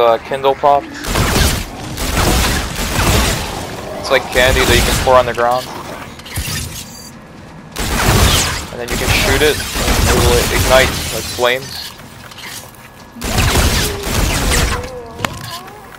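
Gunshots fire in rapid, loud bursts.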